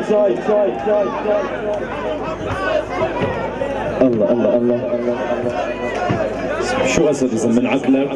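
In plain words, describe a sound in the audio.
A large crowd of men chatters and shouts loudly.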